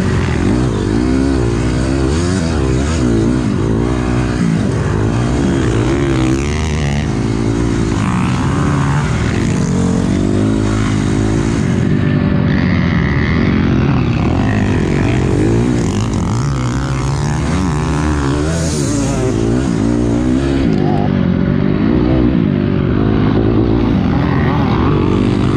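A dirt bike engine roars up close, revving up and down as the rider shifts.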